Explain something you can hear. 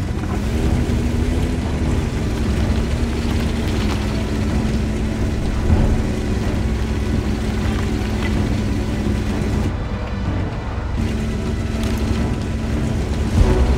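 A tank engine rumbles and roars steadily.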